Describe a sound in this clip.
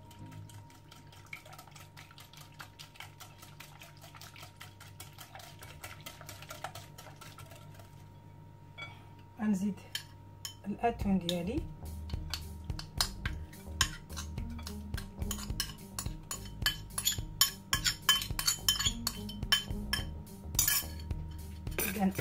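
A whisk beats rapidly against a bowl.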